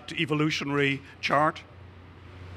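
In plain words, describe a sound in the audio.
An elderly man speaks into a microphone with animation.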